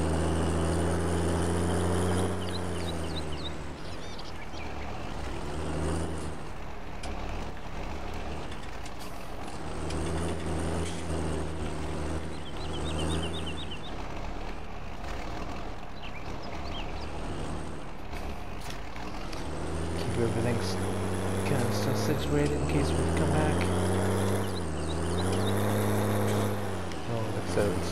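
A tractor engine rumbles steadily and revs up and down.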